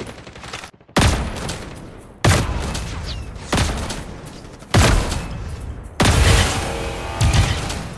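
Gunshots boom loudly in sharp bursts, echoing after each.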